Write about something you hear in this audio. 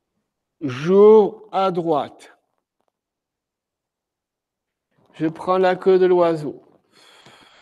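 A man speaks calmly and slowly nearby.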